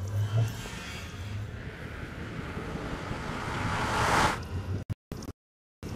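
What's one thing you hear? A portal hums and whooshes with a swelling drone.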